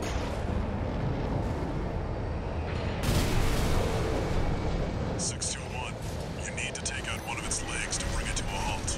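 A mech's thrusters roar steadily.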